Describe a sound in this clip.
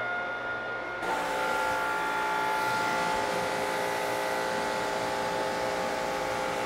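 A pressure washer sprays water hard against a car tyre.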